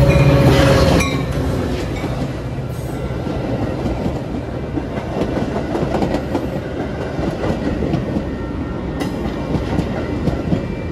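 Passenger railcars rattle and clack past close by.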